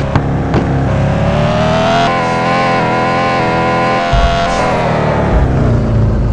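A car engine revs high.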